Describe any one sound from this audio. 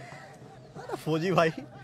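A young man laughs heartily up close.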